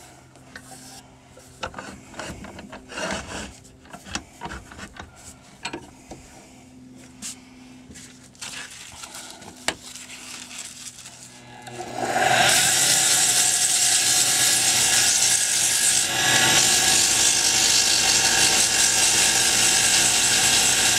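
A wood lathe motor hums as it spins.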